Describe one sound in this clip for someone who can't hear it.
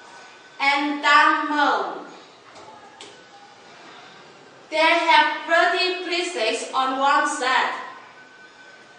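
A woman speaks calmly and clearly close by.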